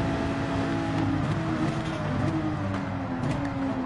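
A racing car engine drops in pitch as the car brakes hard for a corner.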